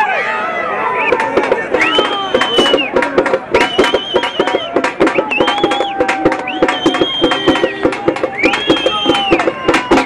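A crowd claps hands rapidly.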